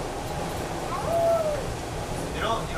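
Train brakes squeal briefly as the train slows.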